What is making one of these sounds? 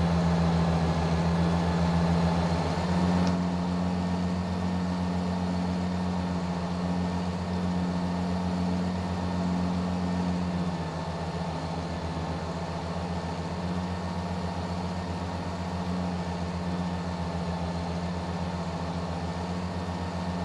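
A diesel truck engine hums steadily as the truck drives along.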